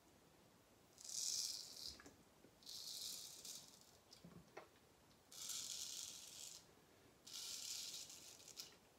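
A straight razor scrapes through stubble in short strokes.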